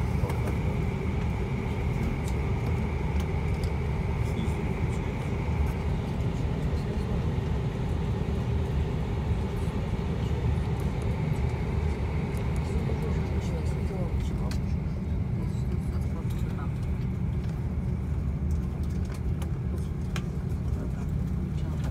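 A jet plane's engines roar steadily as it taxis, heard from inside the cabin.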